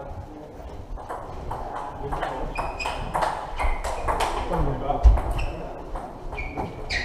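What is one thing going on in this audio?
A table tennis ball clicks back and forth in a quick rally, echoing in a large hall.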